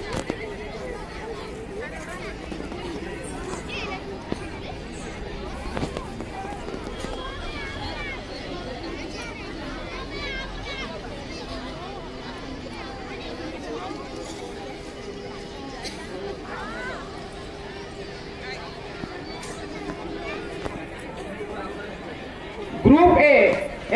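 People chatter in the background outdoors.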